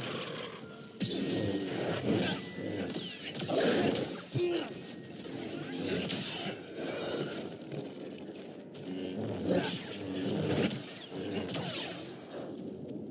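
Energy blades hum and clash with sharp crackling impacts.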